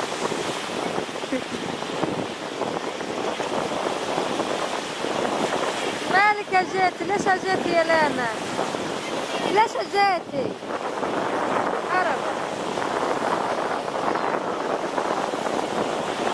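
Water splashes as children play in the sea.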